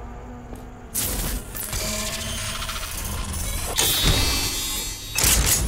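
A metal chest unlocks and opens with a mechanical whirring clank.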